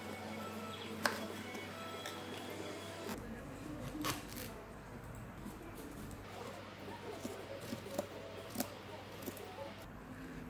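A knife taps on a plastic cutting board.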